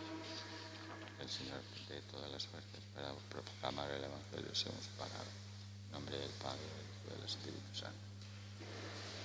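A man speaks softly through a microphone in a large echoing hall.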